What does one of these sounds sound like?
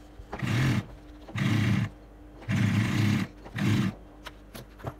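A sewing machine stitches in short, fast bursts.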